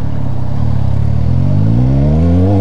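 A motorcycle engine revs up, rising in pitch.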